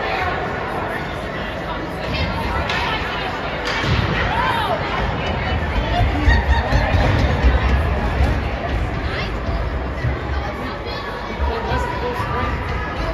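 A crowd chatters in a large echoing arena.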